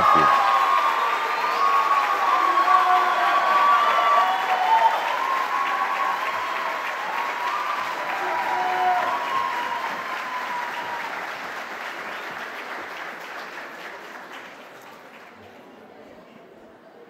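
A large crowd cheers and chants in a big echoing hall, then fades away.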